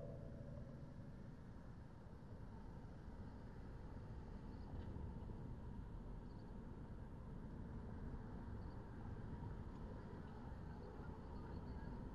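Cars drive past on the road nearby.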